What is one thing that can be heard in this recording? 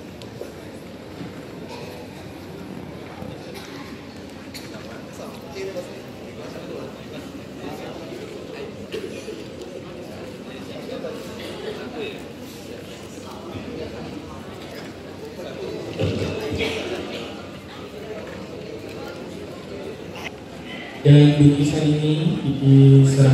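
A crowd murmurs in a large echoing room.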